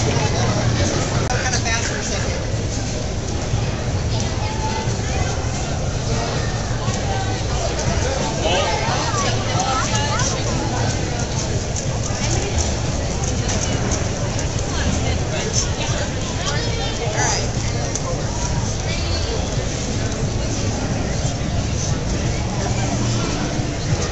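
A crowd murmurs throughout a large echoing hall.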